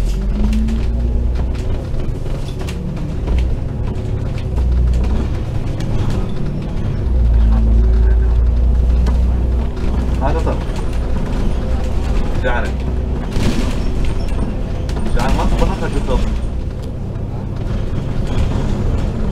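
A bus engine rumbles steadily, louder at times.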